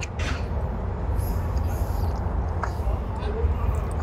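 A young woman chews a pastry.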